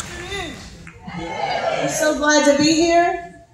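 Women speak together through a microphone over a loudspeaker.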